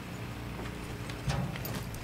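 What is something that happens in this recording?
Chains rattle and clink as someone climbs.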